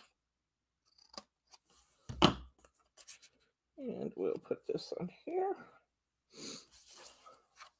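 Paper rustles and slides on a table.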